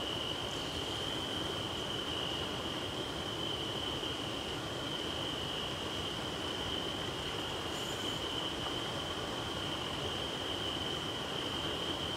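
A fishing reel clicks and whirs as a line is wound in.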